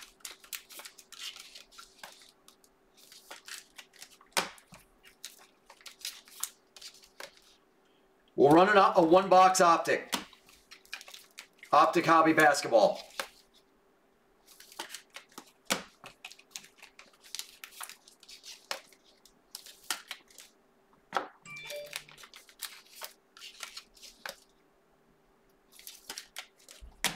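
Cards and plastic wrappers rustle and click close by.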